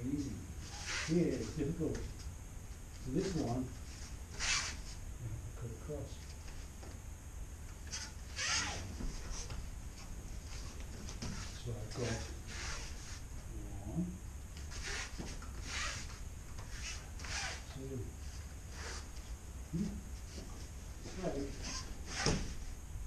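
Bodies thump onto a padded mat as people are thrown.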